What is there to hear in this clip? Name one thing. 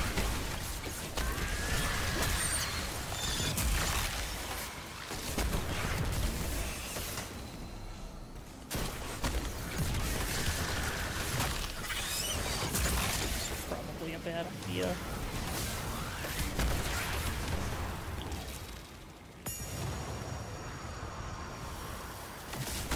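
Rapid gunfire and energy blasts crackle and boom.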